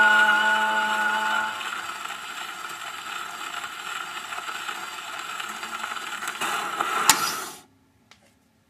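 A gramophone record hisses and crackles as it spins.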